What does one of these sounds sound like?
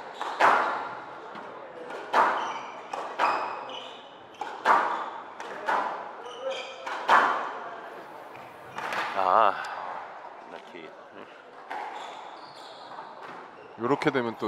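Sneakers squeak.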